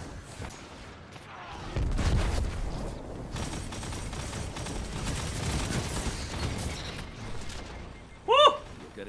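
Gunfire from a video game crackles and booms.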